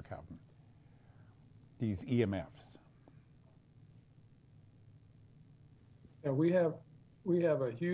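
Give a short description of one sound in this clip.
An elderly man speaks slowly and calmly over an online call, with long pauses.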